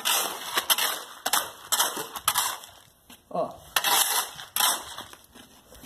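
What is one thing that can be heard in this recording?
A wooden pole scrapes and splashes through wet concrete.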